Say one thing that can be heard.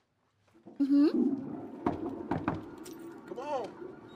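A man knocks on a door.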